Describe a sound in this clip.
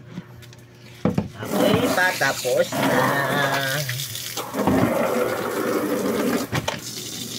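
Water splashes and pours into a plastic basin.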